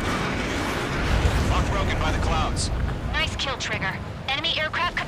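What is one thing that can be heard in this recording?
An aircraft explodes nearby with a deep boom.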